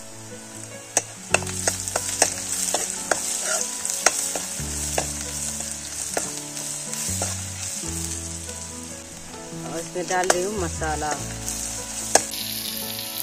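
A metal ladle scrapes and clinks against a wok.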